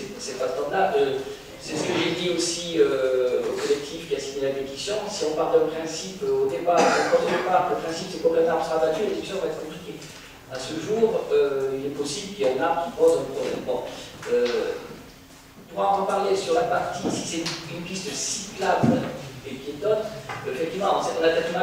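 A man speaks calmly into a microphone in a large room with a slight echo.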